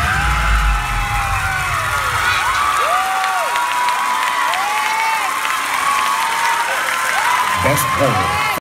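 A large crowd of young fans screams and cheers loudly in a big hall.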